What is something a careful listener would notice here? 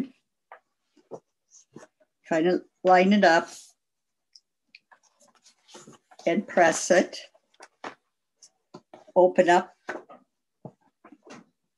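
Paper rustles as a card is handled.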